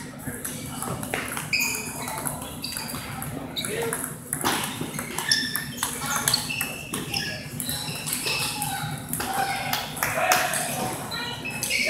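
A table tennis ball clicks back and forth off paddles and tables.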